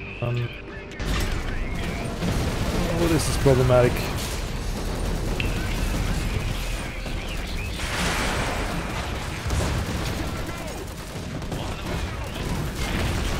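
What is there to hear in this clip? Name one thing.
Guns fire in rapid bursts during a battle.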